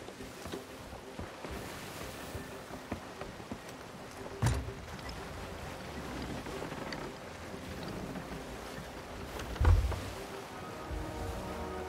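Waves wash and surge against a wooden ship.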